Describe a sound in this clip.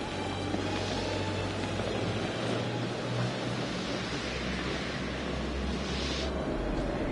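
Footsteps crunch slowly through snow.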